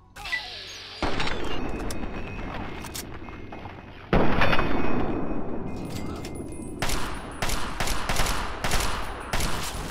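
A rifle fires loud bursts of gunshots that ring out and echo.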